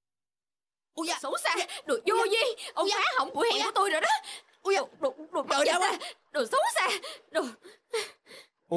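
A young man shouts with animation.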